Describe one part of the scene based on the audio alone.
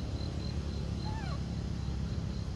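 A baby monkey gives a short high squeak.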